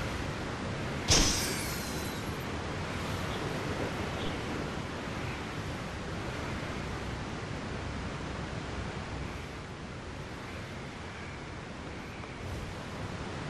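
Wind rushes steadily past while flying.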